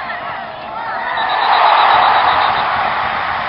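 A crowd roars loudly as a ball is kicked toward goal.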